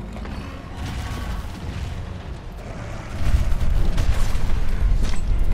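A huge monster stomps heavily with a deep rumble.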